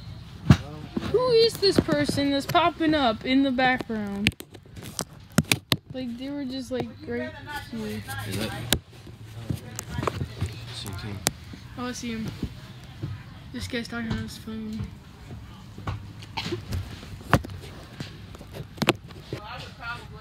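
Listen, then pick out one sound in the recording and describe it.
A teenage boy talks with animation close by.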